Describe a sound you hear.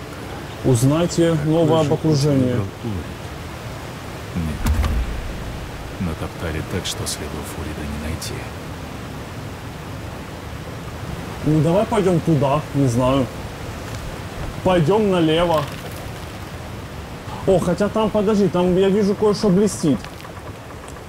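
A man speaks with animation in short bursts, close to a microphone.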